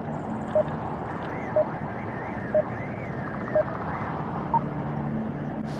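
Short electronic beeps sound once a second, like a countdown.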